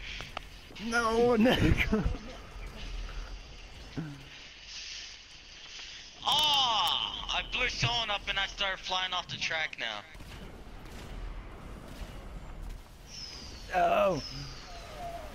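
An explosion bursts with a heavy boom.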